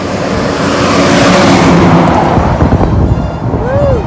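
A heavy truck engine rumbles loudly as the truck passes close by and fades away.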